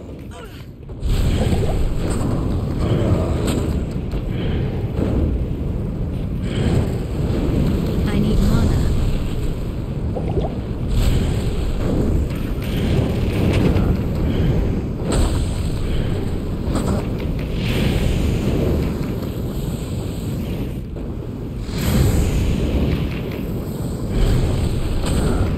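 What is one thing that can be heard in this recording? Magic blasts burst with sharp hits.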